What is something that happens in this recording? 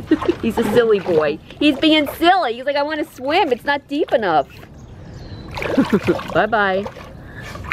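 A dog splashes about in shallow water.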